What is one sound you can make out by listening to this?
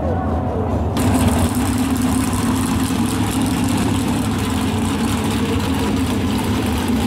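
A car engine rumbles loudly close by.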